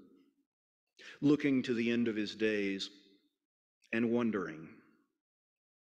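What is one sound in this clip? A man speaks calmly into a microphone in a quiet, slightly echoing room.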